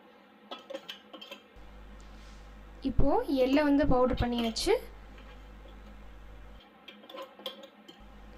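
A metal spoon scrapes inside a metal jar.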